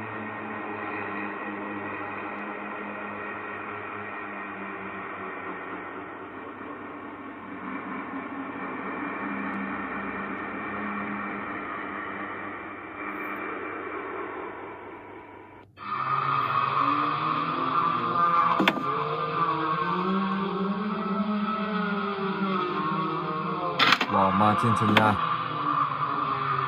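Eerie game music plays from a tablet speaker.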